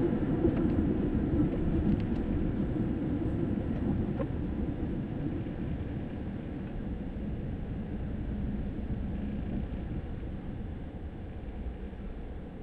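A car engine hums steadily with road rumble from inside the car, slowly easing as the car slows down.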